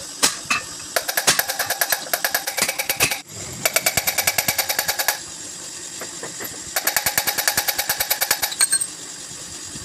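A metal tool taps rapidly against an engine part in quick bursts.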